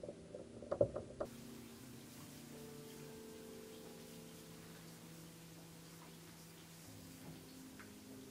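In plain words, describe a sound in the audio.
A bath bomb fizzes and crackles softly in bath water.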